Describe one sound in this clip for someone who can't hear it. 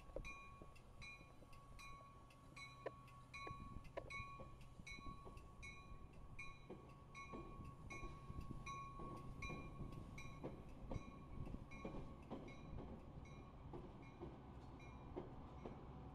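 A passenger train rumbles steadily past close by.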